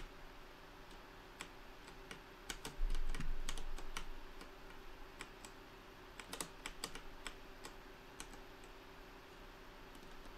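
A computer fan hums softly and steadily.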